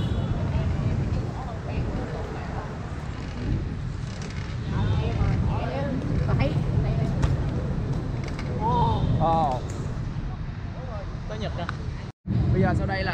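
Bicycle tyres roll and rattle on paving.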